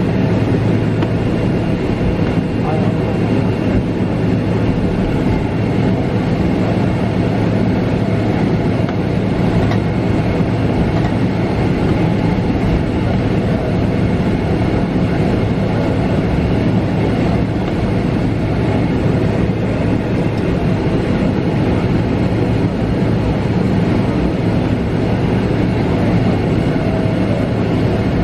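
Airliner wheels rumble over the taxiway.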